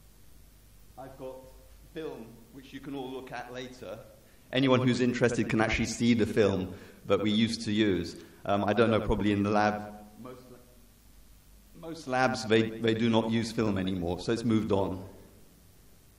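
A man speaks calmly into a microphone, heard through loudspeakers in a large echoing hall.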